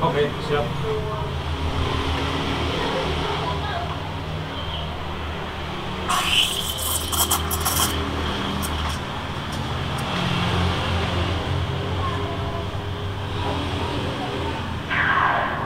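Milk hisses and gurgles steadily as it is steamed.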